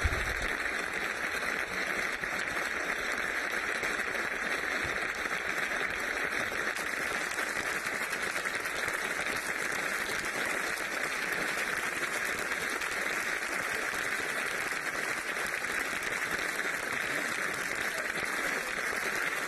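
A large crowd applauds loudly in a large echoing hall.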